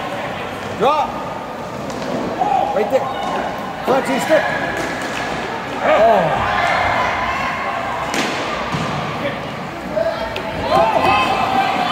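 Skates scrape and squeal on ice in an echoing rink.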